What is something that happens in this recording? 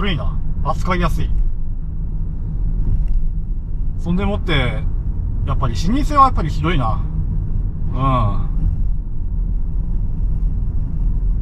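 A car engine hums with steady road rumble from inside the car.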